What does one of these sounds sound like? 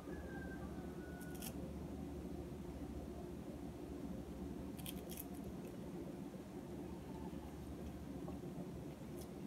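A knife slices through soft fruit.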